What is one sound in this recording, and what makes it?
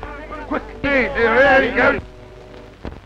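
A woman cries out in distress.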